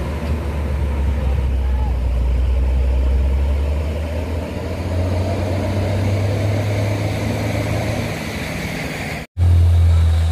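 A heavy truck engine rumbles low as the truck pulls away.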